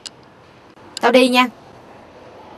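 A young woman speaks briefly up close.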